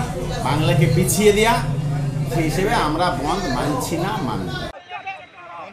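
A middle-aged man speaks with animation, close to the microphone.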